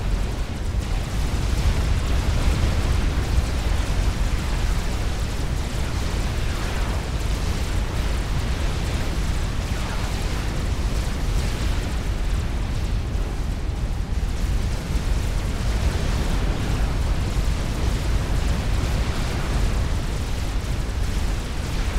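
Game laser weapons fire in rapid bursts.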